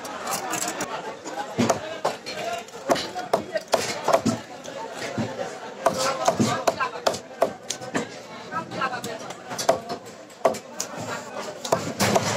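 Fish are scraped against a fixed curved blade, rasping off their scales.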